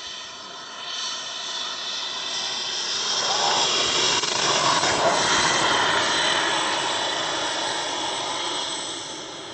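A model jet aircraft roars as it accelerates along a runway for takeoff.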